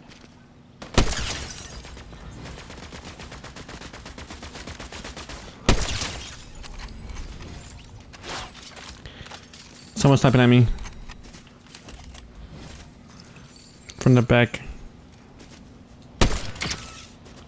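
A rifle fires sharp, loud shots a few times.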